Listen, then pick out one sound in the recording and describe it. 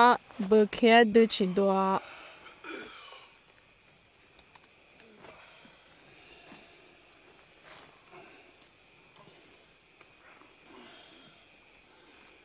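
Footsteps scuff and shuffle over rocky ground.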